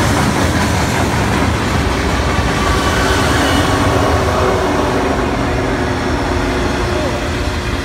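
A diesel locomotive engine drones loudly as it passes.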